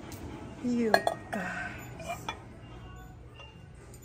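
Ceramic mugs clink softly as a hand handles them.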